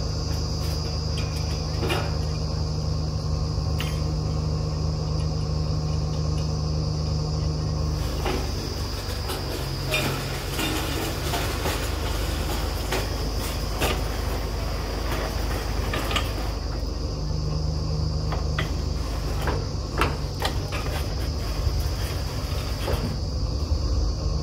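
A drilling rig's engine rumbles steadily close by.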